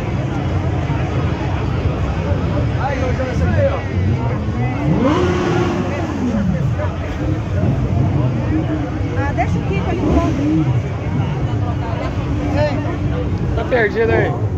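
Motorcycle engines idle and rev nearby.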